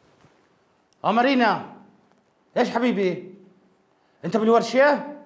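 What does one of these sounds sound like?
A man speaks with animation close by, in short bursts.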